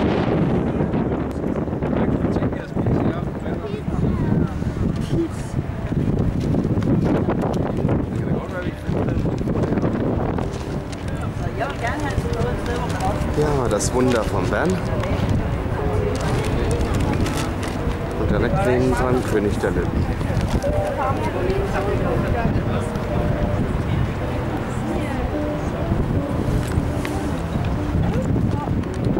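Wind blows hard outdoors and rumbles loudly.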